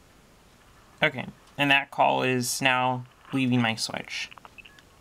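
A man's voice speaks through a telephone earpiece.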